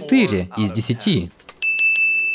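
A man speaks close to a microphone with animation.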